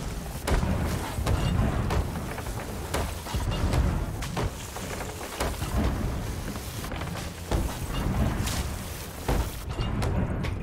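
Water gushes and sprays loudly through a hole.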